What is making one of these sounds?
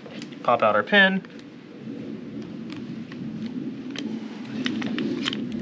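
Metal parts of a rifle click and rattle as they are handled.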